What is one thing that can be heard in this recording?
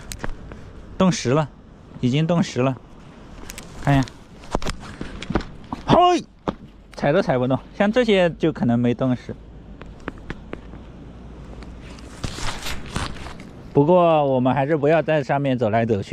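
A man speaks close by, calmly and with animation.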